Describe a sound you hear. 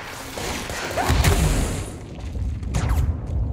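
A deep rumbling explosion booms.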